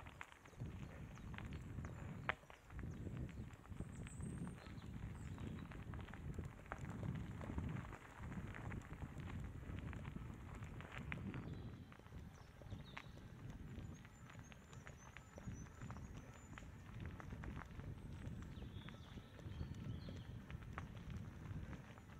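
Bike tyres crunch and rattle over a dirt and gravel trail.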